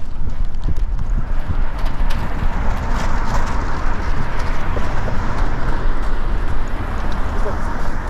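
A car drives past on the road nearby.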